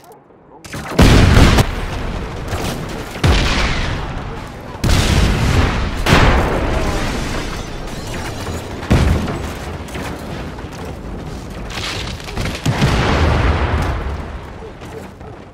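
Loud explosions boom one after another and rumble away.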